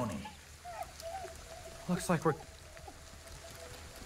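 A dog barks.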